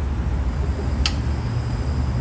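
A metal pot clinks as it is lifted.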